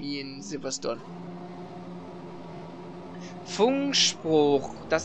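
A racing car engine idles with a steady hum.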